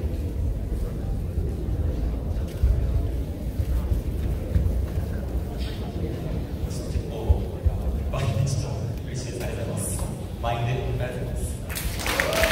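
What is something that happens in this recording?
A rock band plays loudly through amplifiers in a large hall.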